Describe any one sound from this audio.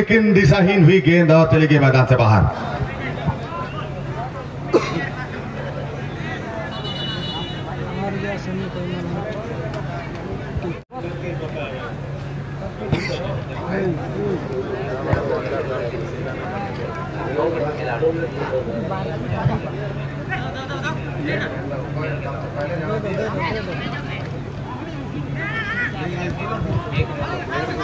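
A man commentates with animation through a loudspeaker.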